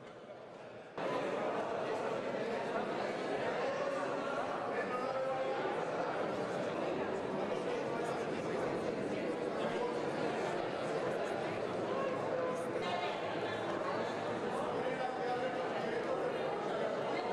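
A crowd of men and women talks loudly and excitedly nearby.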